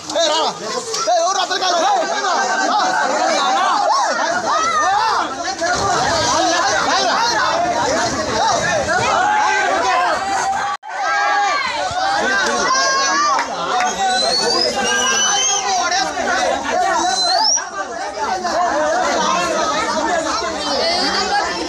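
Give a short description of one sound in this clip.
A crowd of men shouts and chants loudly close by.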